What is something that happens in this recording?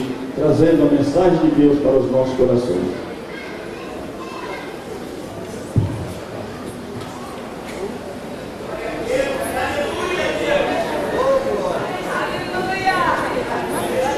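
A man speaks loudly and fervently through a microphone in a large echoing hall.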